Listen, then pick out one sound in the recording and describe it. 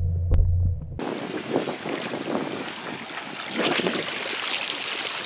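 Seawater splashes and pours from a plastic bottle trap lifted out of the sea.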